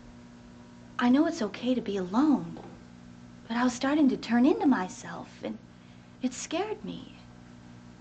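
A young woman speaks emotionally, close by.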